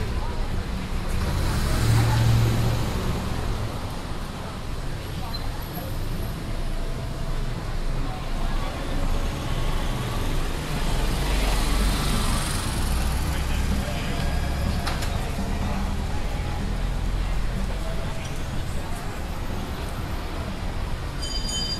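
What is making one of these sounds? Cars drive past on a street outdoors.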